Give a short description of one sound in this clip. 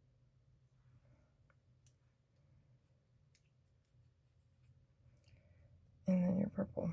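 A woman speaks quietly close by.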